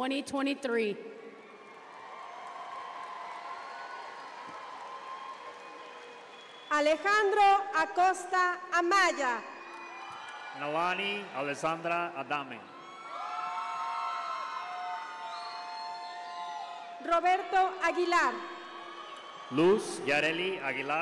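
Young women cheer and shriek loudly in a large echoing hall.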